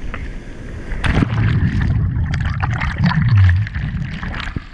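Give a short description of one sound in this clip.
Water gurgles and bubbles as if heard from underwater.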